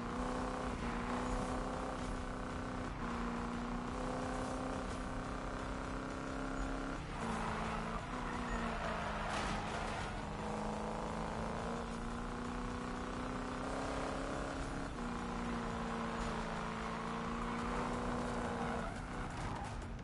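A car engine roars at high revs, shifting gears as it races.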